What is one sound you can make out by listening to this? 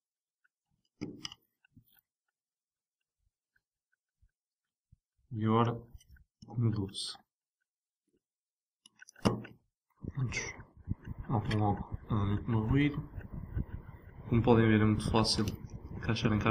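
A plastic connector clicks into place.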